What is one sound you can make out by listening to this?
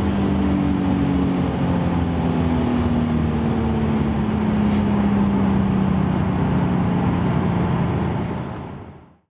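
A car engine hums steadily from inside the car, its pitch slowly dropping.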